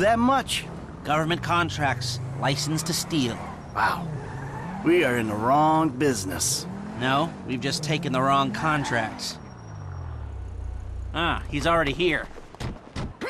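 A car engine hums as the car drives.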